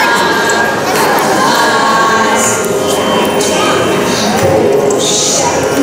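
Young girls sing together through microphones.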